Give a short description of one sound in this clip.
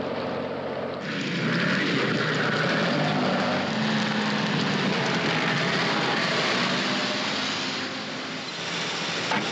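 A lorry drives past on a road.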